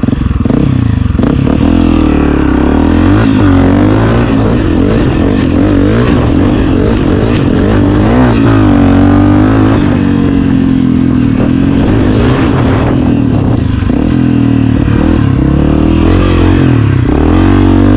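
A dirt bike engine roars up close, revving up and down as gears shift.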